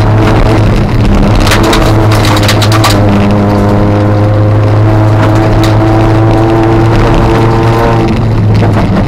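Tyres crunch and rattle over a gravel road.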